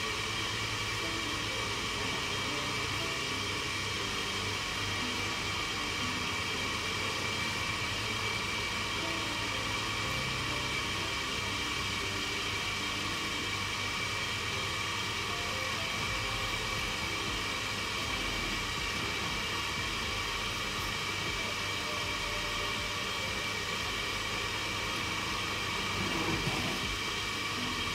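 A wooden spoon scrapes and stirs in a bowl.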